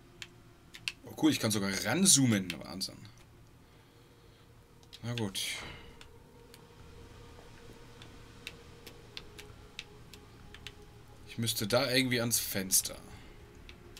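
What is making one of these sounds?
A man talks calmly into a microphone close by.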